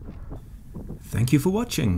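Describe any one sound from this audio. Wind buffets the microphone in loud bursts near the end.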